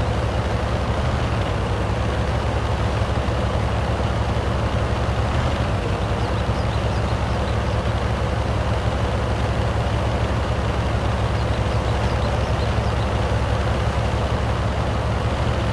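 A tank engine drones as the tank drives.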